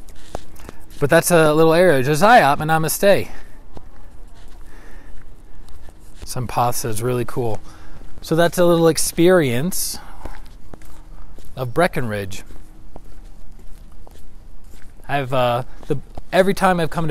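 A man speaks close by in a lively, conversational way.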